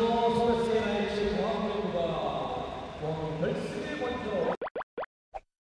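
A crowd murmurs and cheers in a large echoing hall.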